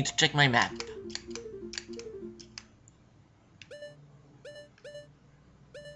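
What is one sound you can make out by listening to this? Short electronic menu blips sound in quick succession.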